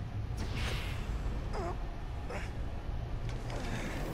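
Heavy metal doors slide shut with a mechanical hiss.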